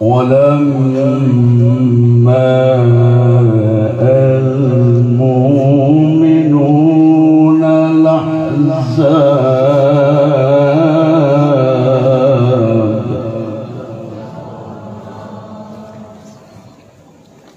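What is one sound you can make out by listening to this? An elderly man sings a long, wavering chant through a microphone in an echoing hall, fading out at the end.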